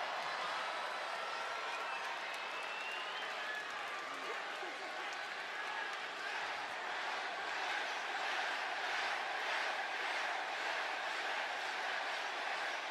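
A large crowd cheers and chants loudly in a big echoing arena.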